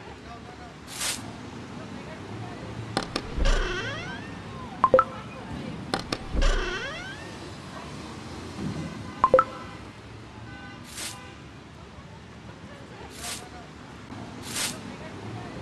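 Game menu buttons click sharply, a few times.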